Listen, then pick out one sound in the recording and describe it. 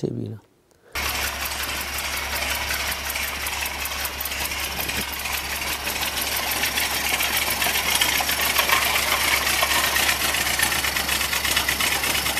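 An old car engine chugs and rattles rapidly close by.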